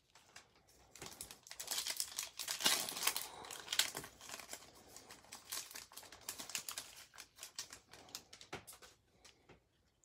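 A foil wrapper crinkles and tears as it is ripped open.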